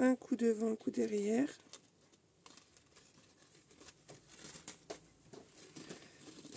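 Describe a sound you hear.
Stiff paper crinkles and rustles as hands fold it.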